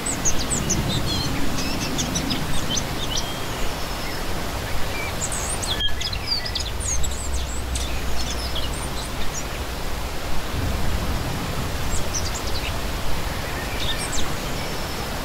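A shallow stream babbles and splashes steadily over rocks.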